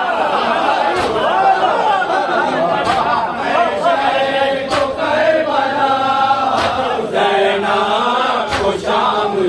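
Men beat their chests in unison with slow, regular thuds.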